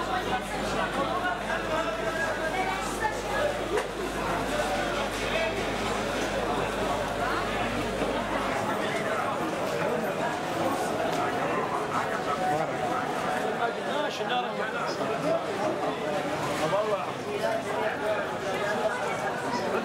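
A crowd of men and women chatters steadily all around.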